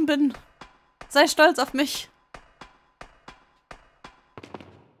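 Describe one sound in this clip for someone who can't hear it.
Shoes clank on metal ladder rungs.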